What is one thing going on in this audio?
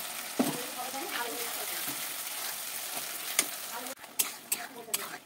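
A spatula scrapes and clatters against a metal pan.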